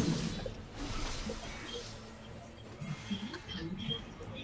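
Small sword hits clink and thud.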